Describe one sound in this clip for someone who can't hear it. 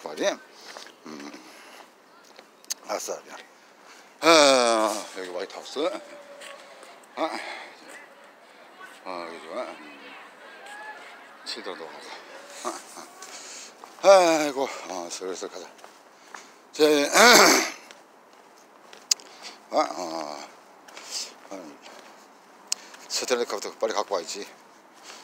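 A middle-aged man talks close to the microphone, with pauses.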